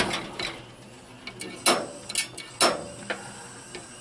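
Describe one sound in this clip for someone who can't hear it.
A gas stove igniter clicks.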